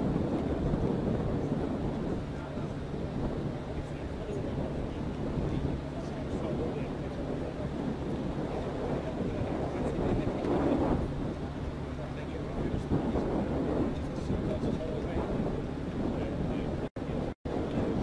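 A hovercraft engine drones steadily in the distance.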